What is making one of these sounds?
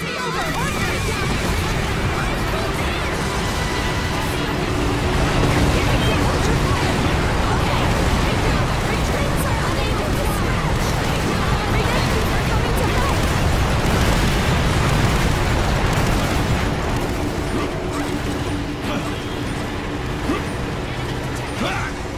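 Explosions boom and rumble continuously.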